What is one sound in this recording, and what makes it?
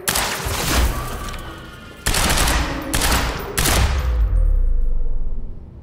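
A rifle fires loud bursts of gunshots.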